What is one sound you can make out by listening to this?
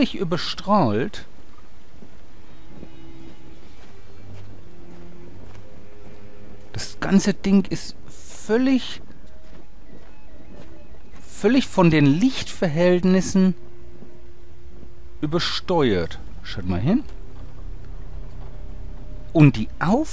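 A man speaks slowly in a deep voice.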